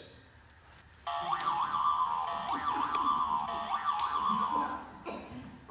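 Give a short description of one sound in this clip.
A handbell rings brightly in an echoing room.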